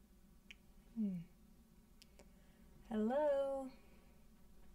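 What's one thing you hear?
A young woman speaks calmly and close up.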